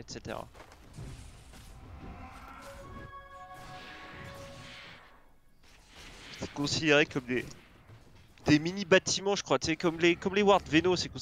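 Magical spell effects whoosh and crackle during a fight.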